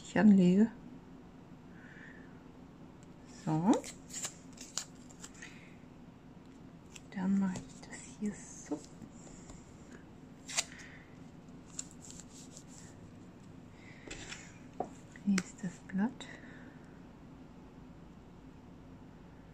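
Fingers rub and tap on paper.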